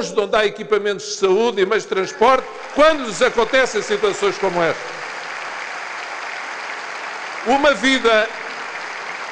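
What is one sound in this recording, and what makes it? A middle-aged man speaks forcefully into a microphone in a large hall.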